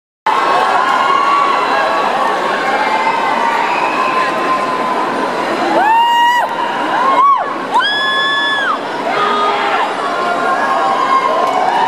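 A woman sings loudly through a loudspeaker system.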